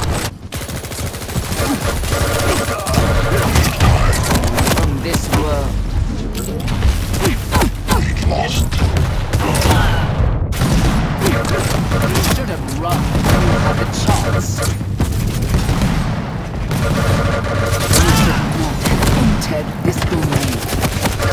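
Rapid gunfire blasts and rattles.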